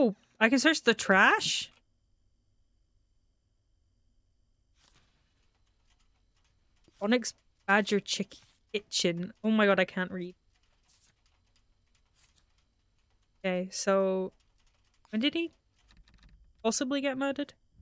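A young woman talks into a close microphone, in short bursts with pauses.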